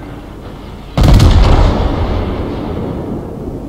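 Heavy ship guns fire with a loud boom that rumbles away.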